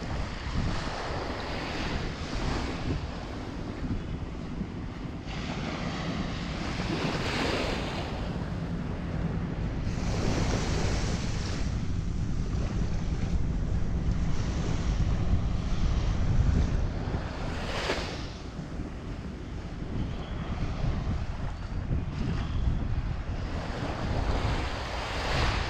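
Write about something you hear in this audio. Small waves lap and wash gently onto the shore.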